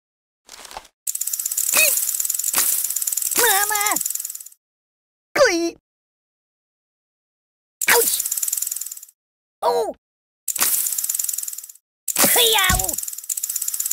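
A ragdoll toy squeaks and groans as it is thrown about.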